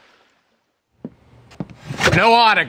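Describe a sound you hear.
A small wooden hatch slides open with a clack.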